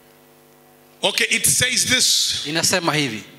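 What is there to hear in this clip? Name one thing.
A man speaks loudly and with animation through a microphone.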